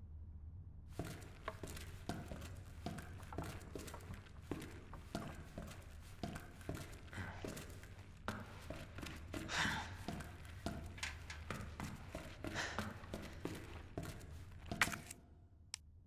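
Footsteps walk briskly on a hard floor.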